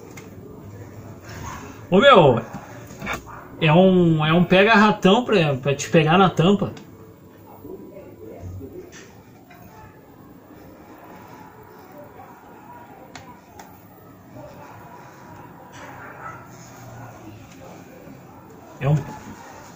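Plastic clicks and taps as a laptop is handled.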